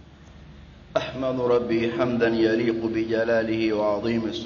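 An elderly man preaches with emphasis into a microphone.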